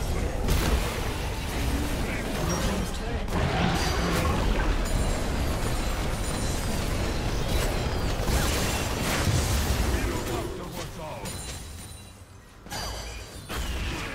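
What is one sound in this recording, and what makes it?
Spell effects burst and crackle in a fast game fight.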